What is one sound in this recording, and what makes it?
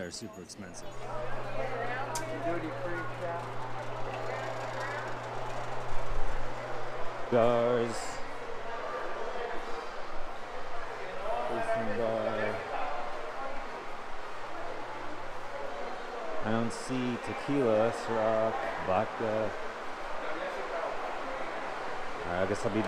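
People chatter in a large indoor space.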